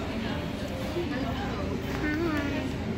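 A young boy speaks brightly, close by.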